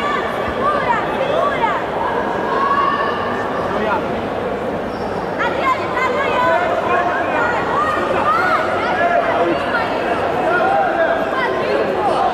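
Spectators shout and call out in a large hall.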